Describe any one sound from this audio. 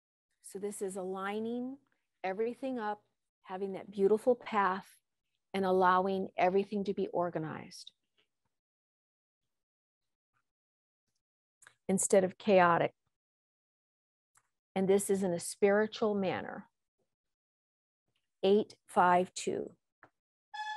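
An older woman speaks calmly through a microphone, with pauses.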